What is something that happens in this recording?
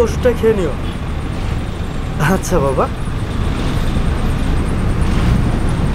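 A young man talks on a phone, close by.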